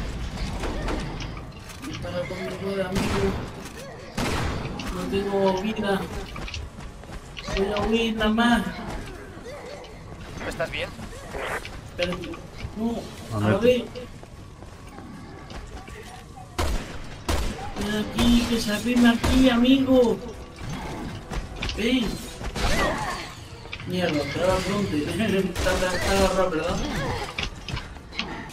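Gunshots and explosions ring out.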